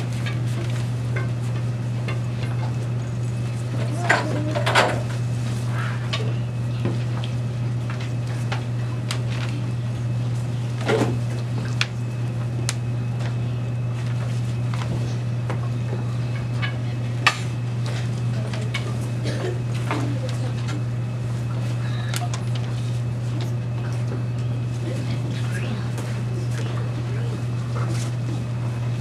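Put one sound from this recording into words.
A young girl reads aloud.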